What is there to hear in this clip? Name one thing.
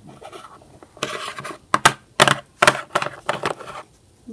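Small plastic toys tap and click against a hard surface.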